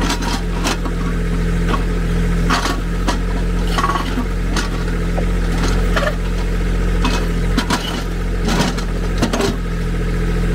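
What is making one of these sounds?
A backhoe bucket scrapes and knocks against rocks.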